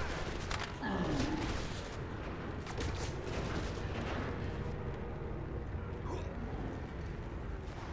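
Footsteps thud on a rooftop.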